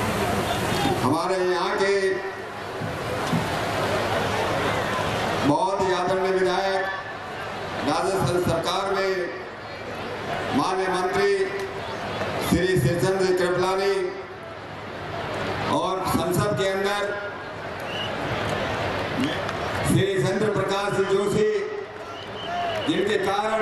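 A man sings loudly through a microphone and loudspeakers, outdoors.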